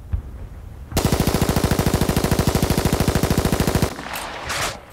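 A rifle fires a rapid automatic burst.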